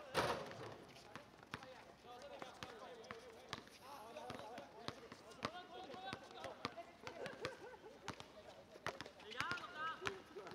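A ball is kicked with sharp thuds on a hard court.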